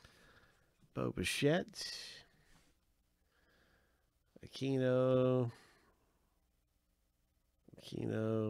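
Trading cards rustle and slide as gloved hands sort through them.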